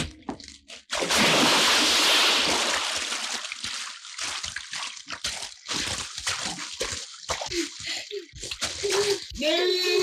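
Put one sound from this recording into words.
Water splashes heavily as someone thrashes in it.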